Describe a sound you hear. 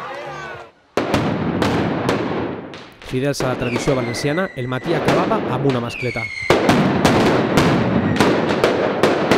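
Firecrackers burst in rapid, loud bangs that echo off buildings.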